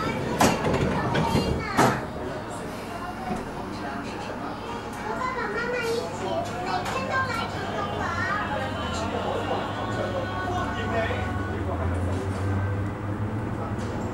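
A train hums and rumbles as it pulls away, growing louder.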